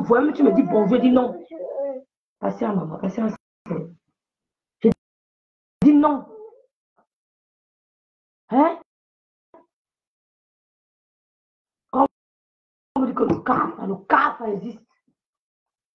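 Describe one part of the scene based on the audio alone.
A young woman talks close by with animation, in short bursts with pauses.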